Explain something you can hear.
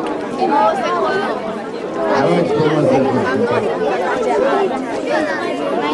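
A man speaks into a microphone over a loudspeaker outdoors.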